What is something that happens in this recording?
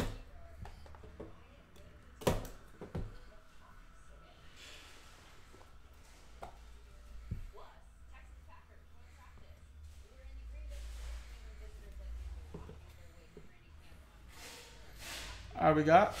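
Cardboard and plastic rustle and click as hands open a box of cards.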